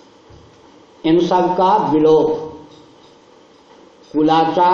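An elderly man chants in a sustained voice through a microphone.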